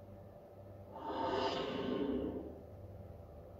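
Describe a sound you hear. A video game plays a loud swooshing effect through a television speaker.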